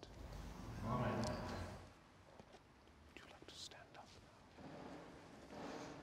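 A middle-aged man speaks calmly and solemnly in a large echoing hall.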